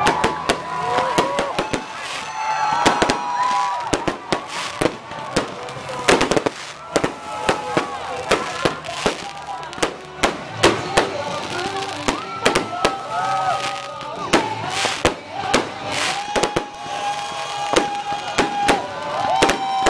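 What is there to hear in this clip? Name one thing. Fireworks burst with loud bangs, one after another.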